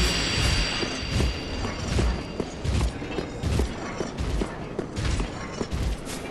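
Heavy armoured footsteps clank on stone at a steady pace.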